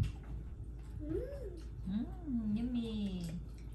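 An elderly woman talks in a lively voice nearby.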